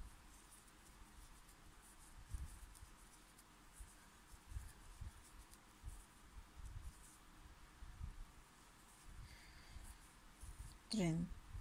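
A metal crochet hook clicks and rubs softly against yarn.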